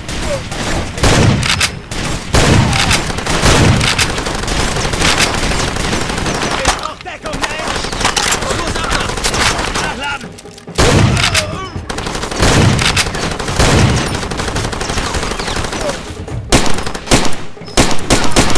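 A rifle fires loud, booming shots in bursts.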